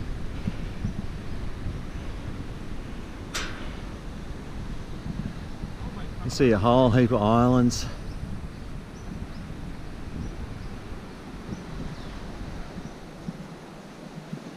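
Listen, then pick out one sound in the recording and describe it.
Wind gusts and rumbles across an open, high place.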